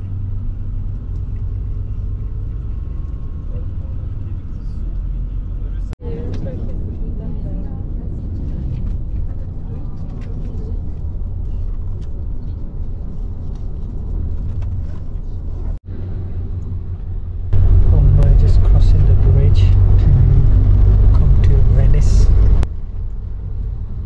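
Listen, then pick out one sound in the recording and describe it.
A vehicle engine rumbles steadily from inside a moving bus.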